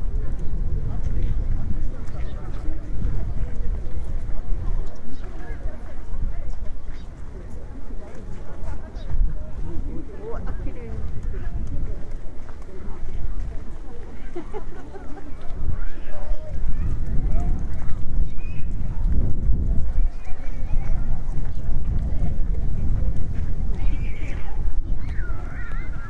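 Men and women chat quietly at a distance.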